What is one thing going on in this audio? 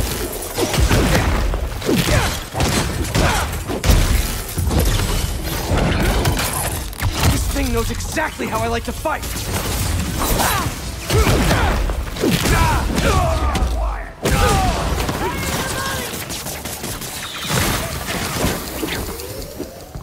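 Punches and impacts thud and crash in a fight.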